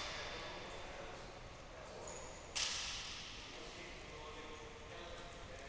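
Footsteps patter on a wooden court in a large echoing hall.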